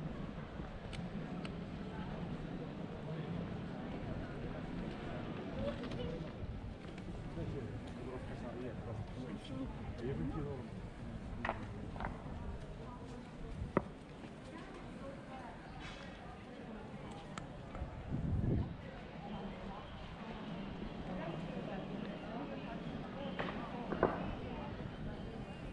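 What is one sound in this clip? Voices of passers-by murmur faintly in the open air.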